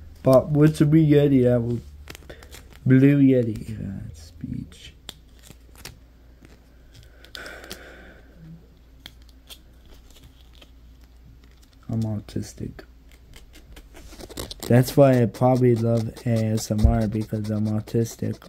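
Fingers rub and crinkle a small piece of material close to a microphone.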